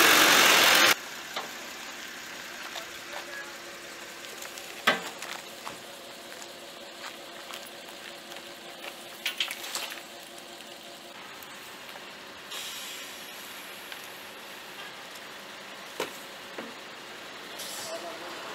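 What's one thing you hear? A garbage truck engine idles.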